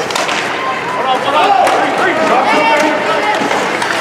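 A crowd of spectators cheers and shouts nearby.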